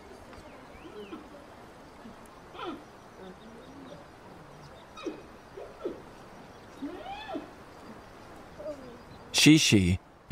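Giant pandas bleat and squeal softly as they wrestle.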